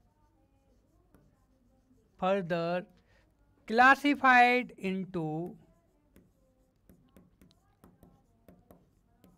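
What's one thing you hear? A marker taps and scrapes on a board.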